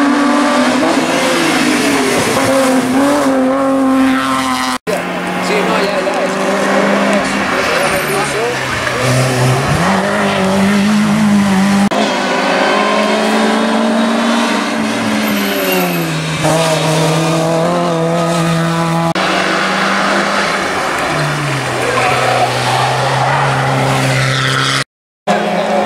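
Rally car engines roar loudly as the cars accelerate uphill, their pitch rising and falling through the gears.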